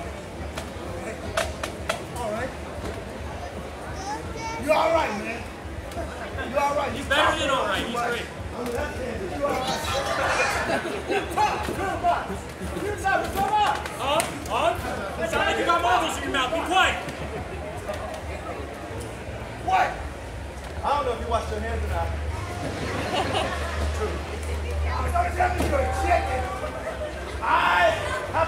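A crowd of men and women chatters and shouts in a large echoing hall.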